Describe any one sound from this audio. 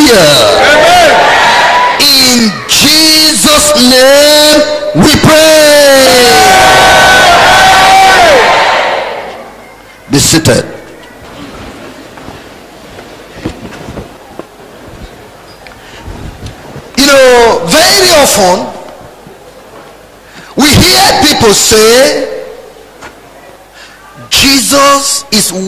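A man preaches loudly and with animation through a microphone and loudspeakers.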